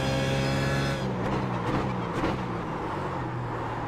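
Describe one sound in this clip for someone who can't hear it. Other racing car engines roar close by.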